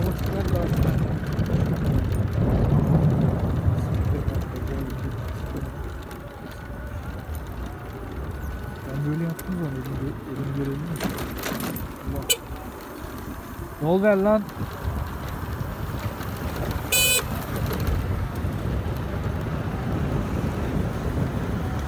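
A scooter motor hums steadily.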